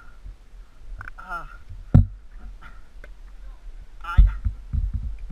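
A man grunts and pants close by.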